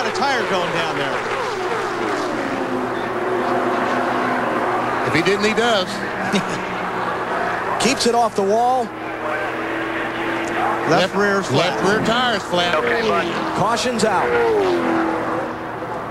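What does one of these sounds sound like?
Race car engines roar loudly, rising and falling in pitch.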